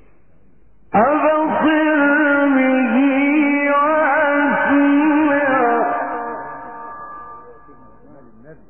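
A man chants in a long, drawn-out voice with a heavy echo.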